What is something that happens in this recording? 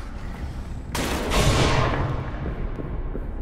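A gunshot booms and echoes.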